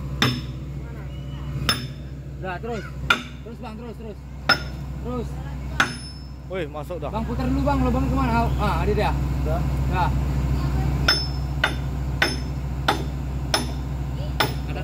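A hammer strikes metal in sharp, ringing blows.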